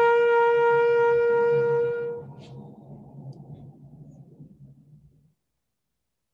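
A bugle plays a long, steady note that fades into an echo.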